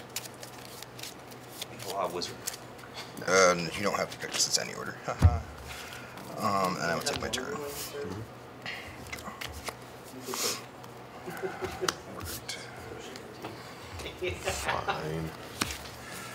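Playing cards are shuffled and slapped down on a table.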